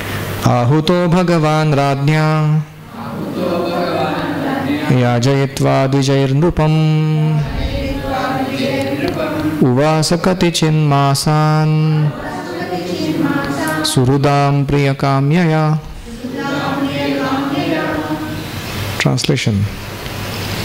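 A man chants a verse in a steady, held voice close to a microphone.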